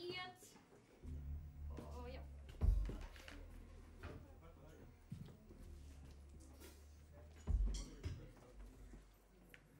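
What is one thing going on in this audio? A keyboard plays low sustained notes.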